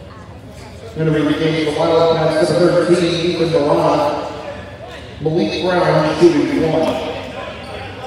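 Spectators talk and call out in a large echoing gym.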